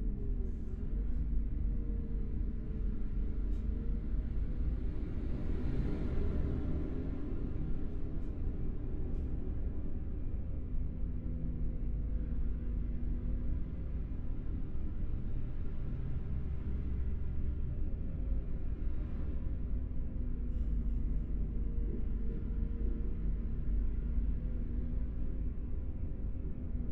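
A heavy engine rumbles steadily, changing pitch slightly as the bus drives.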